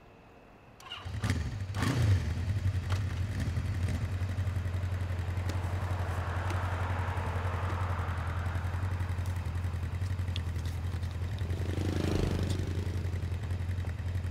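A motorcycle engine starts and idles with a steady low rumble.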